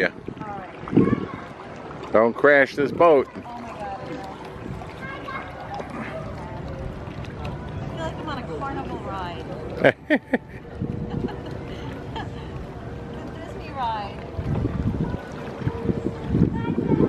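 Water laps gently against a kayak's hull.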